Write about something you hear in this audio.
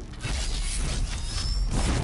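A bowstring twangs as an arrow is loosed.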